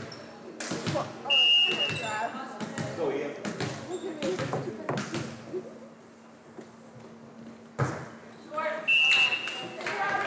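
Players and spectators call out and cheer.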